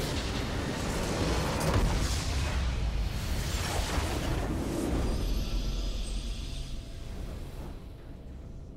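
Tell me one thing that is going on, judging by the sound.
Game spells and explosions crash and burst loudly.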